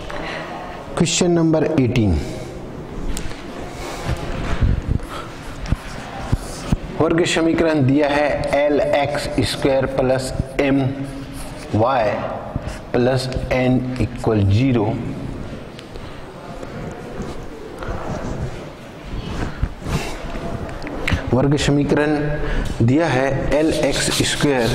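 A middle-aged man speaks calmly through a microphone, explaining.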